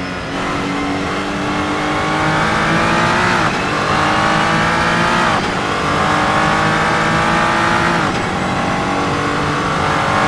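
A racing car engine revs high, rising in pitch and dropping sharply at each gear change.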